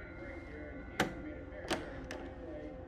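A door handle clicks.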